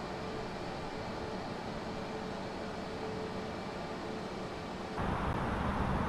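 A jet airliner's engines roar steadily in flight.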